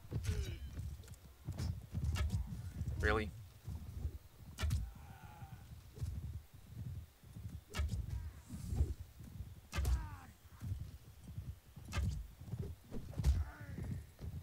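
Metal weapons clash and strike in sharp blows.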